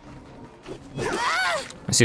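An axe swooshes through the air.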